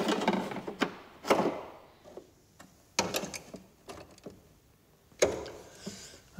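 Sheet metal clatters and scrapes as it is fitted into place.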